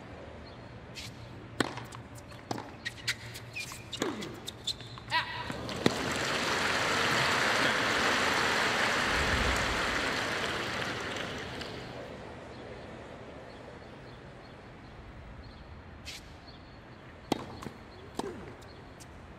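A tennis ball is struck sharply by a racket, back and forth.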